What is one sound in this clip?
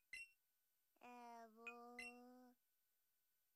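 A small cartoon creature lets out a high, chirpy cry.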